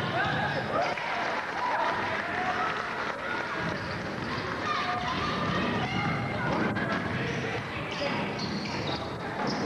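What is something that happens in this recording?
Young women players call out to each other across the court.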